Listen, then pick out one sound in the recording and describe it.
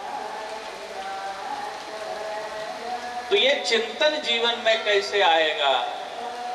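A man speaks through a microphone, calmly at first and then loudly and with animation.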